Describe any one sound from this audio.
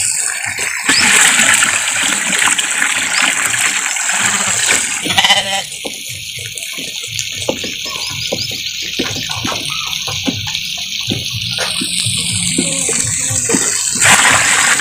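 Water pours from a bucket into a drum and splashes.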